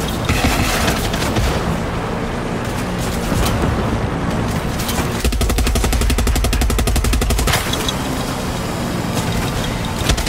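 A helicopter's engine and rotor drone steadily.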